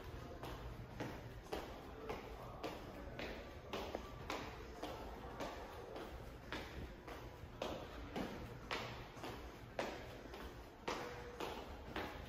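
Footsteps walk at a steady pace on a hard floor.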